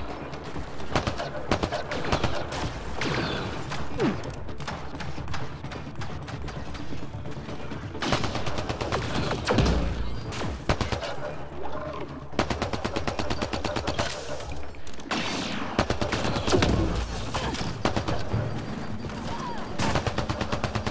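Heavy rifle shots boom one at a time.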